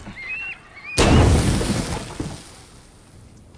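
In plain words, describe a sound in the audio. A heavy crash and clatter of combat rings out.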